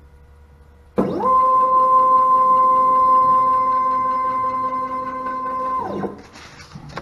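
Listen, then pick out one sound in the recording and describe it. A router motor whines steadily at a high pitch, then winds down.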